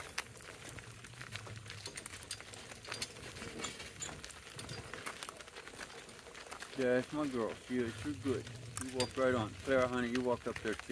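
Donkey hooves clop on a gravel road.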